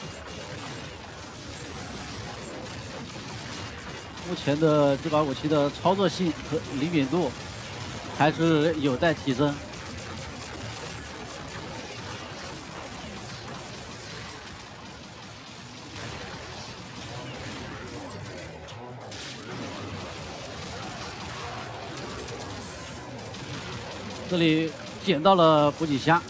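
Energy guns fire in rapid bursts with crackling blasts.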